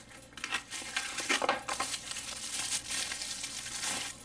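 A small cardboard box rustles and taps as it is handled.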